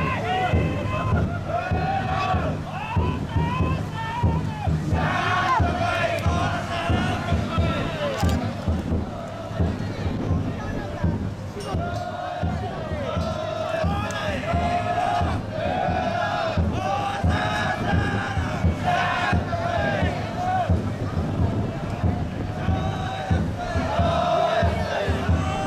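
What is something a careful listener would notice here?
A group of men chant loudly together in rhythm, outdoors.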